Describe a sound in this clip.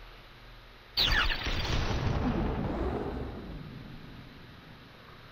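A weapon fires a loud blast that rumbles and slowly fades.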